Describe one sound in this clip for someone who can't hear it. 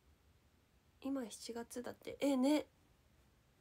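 A young woman speaks briefly and expressively, close to a microphone.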